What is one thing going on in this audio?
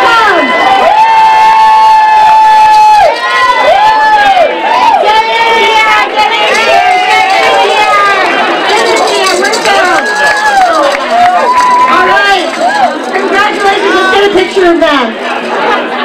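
Young women scream and cheer with delight.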